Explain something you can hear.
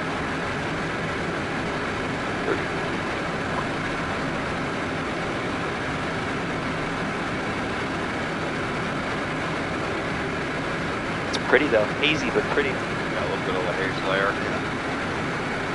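An aircraft engine drones steadily inside a cabin.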